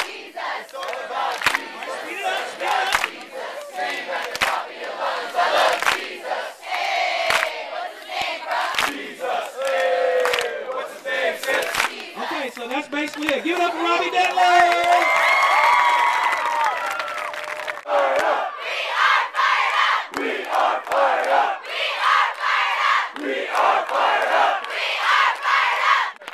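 A large crowd of young people sings and chants loudly outdoors.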